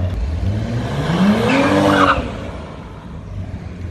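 A car engine revs hard as the car accelerates past.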